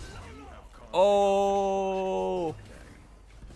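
A young man lets out a long, loud drawn-out shout.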